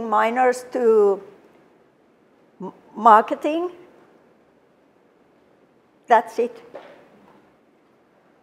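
A middle-aged woman speaks calmly into a microphone in an echoing hall, pausing between phrases.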